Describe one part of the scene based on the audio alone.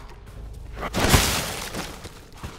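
A shotgun fires with a loud, booming blast.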